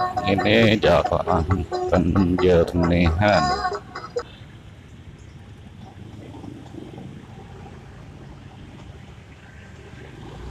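Motorcycle engines rumble nearby in slow traffic.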